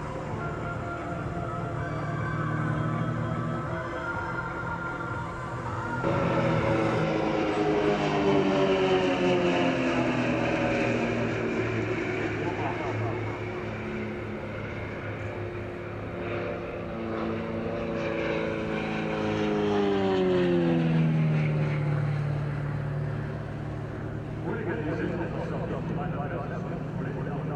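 Single-engine aerobatic propeller planes drone overhead, the engine pitch sliding down as they pass.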